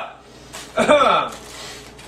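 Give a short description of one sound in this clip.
Aluminium foil crinkles as it is unwrapped.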